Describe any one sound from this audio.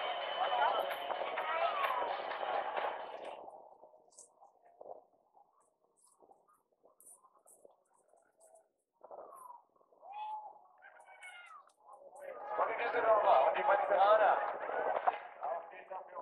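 A crowd cheers and chatters outdoors.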